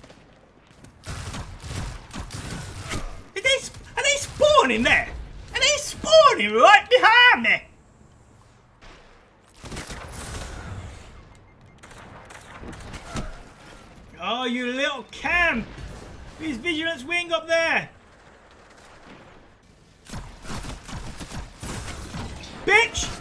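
Gunshots from a video game fire in rapid bursts.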